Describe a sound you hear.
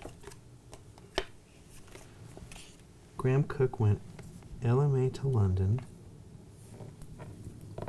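Playing cards tap and slide on a tabletop.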